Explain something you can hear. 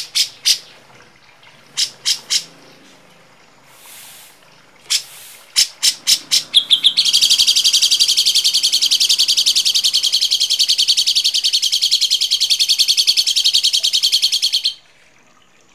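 Birds call with harsh, sharp chirps, then a fast rattling trill.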